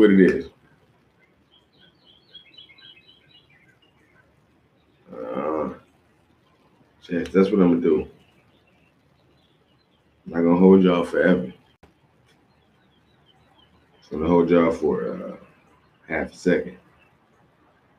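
A man speaks close to a microphone in short, calm bursts with long pauses.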